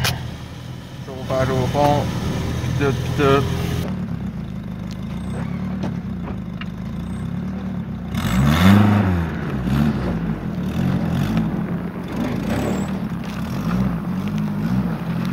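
A car engine runs with a low, steady rumble.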